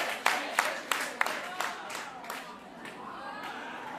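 A woman claps her hands sharply.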